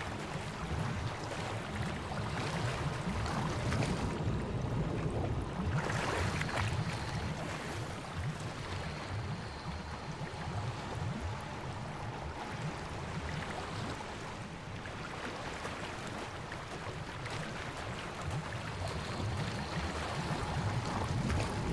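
Water splashes and churns as a swimmer strokes through it.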